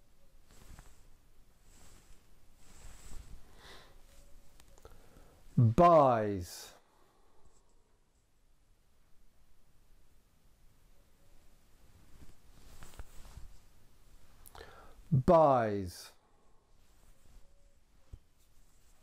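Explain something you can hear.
A man speaks quietly and calmly, close by.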